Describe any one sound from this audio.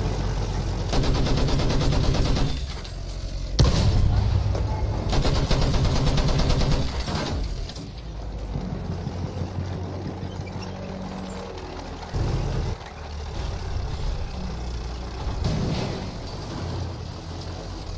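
A light tank engine rumbles as its tracks clank over the ground.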